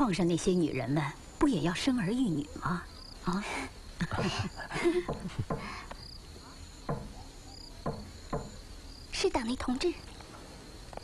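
An elderly woman talks cheerfully nearby.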